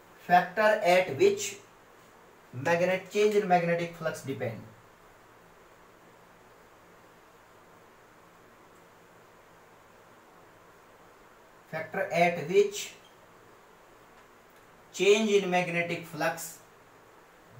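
A man speaks calmly and clearly, close by, pausing between phrases.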